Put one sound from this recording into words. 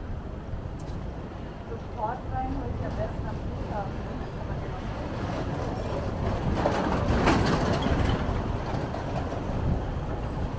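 A van's engine rumbles close by as it drives over cobblestones.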